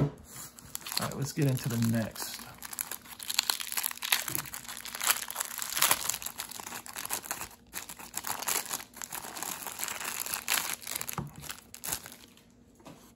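A plastic bag crinkles and rustles as hands open it.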